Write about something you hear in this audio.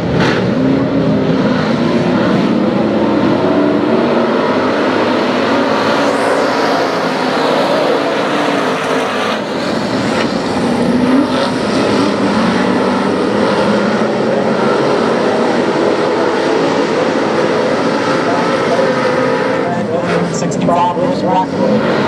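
A pack of stock cars roars at full throttle around a dirt oval.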